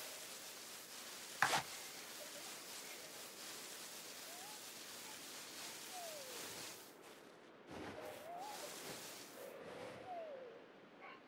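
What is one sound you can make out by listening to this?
Tall grass rustles as someone walks through it.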